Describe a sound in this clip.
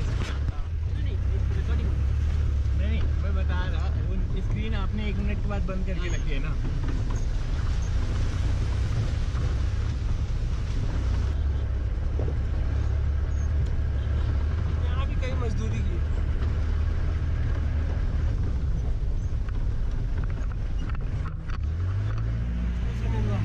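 A vehicle engine rumbles steadily at low pitch.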